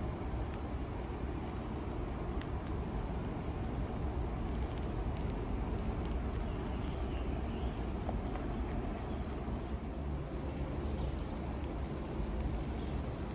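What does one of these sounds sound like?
A spice grinder clicks as it turns.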